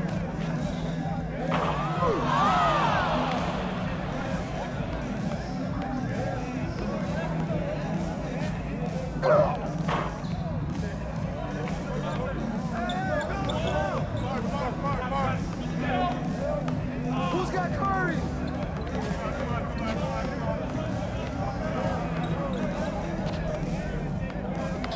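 A basketball bounces steadily on the court.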